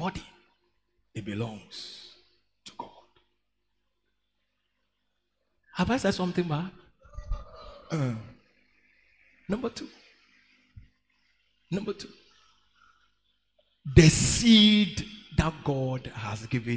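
A young man preaches with animation through a headset microphone, in bursts with pauses.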